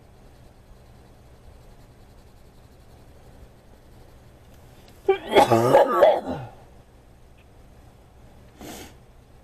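A coloured pencil softly scratches across paper.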